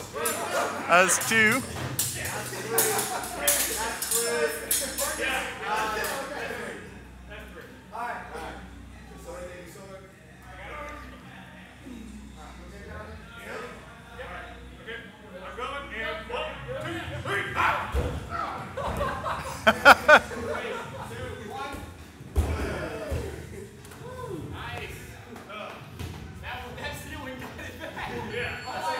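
A group of young men shout and cheer close by.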